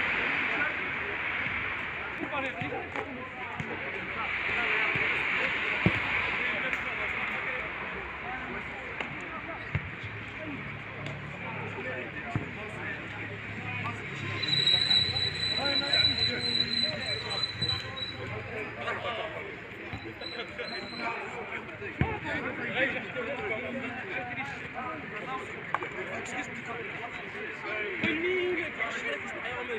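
Men shout and call out across an outdoor football pitch, heard from a distance.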